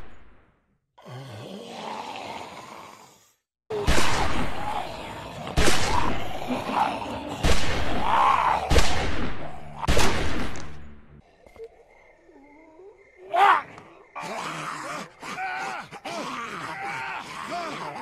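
Zombies groan and snarl.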